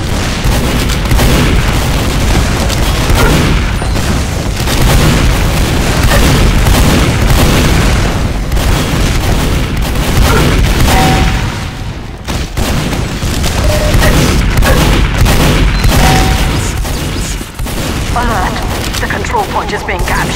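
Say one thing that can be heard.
Shotgun blasts ring out again and again.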